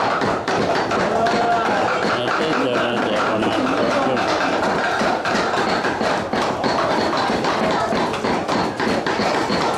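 A knife chops meat on a wooden block with quick thuds.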